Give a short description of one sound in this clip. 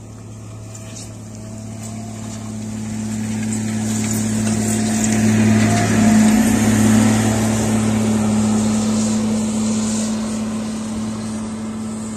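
Dirt and gravel crunch and scrape under a loader's bucket and tyres.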